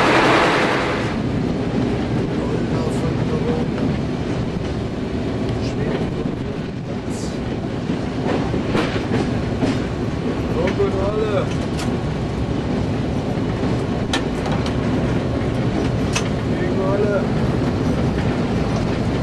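A train rumbles along the tracks with wheels clicking over rail joints.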